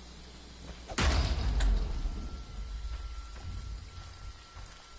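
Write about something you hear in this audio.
A loud metallic crash bursts out and rumbles away.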